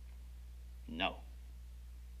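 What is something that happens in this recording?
A middle-aged man speaks firmly and close by.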